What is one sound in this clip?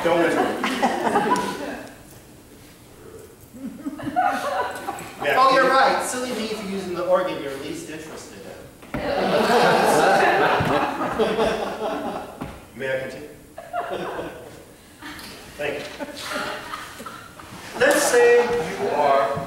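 A man reads aloud in a large echoing room.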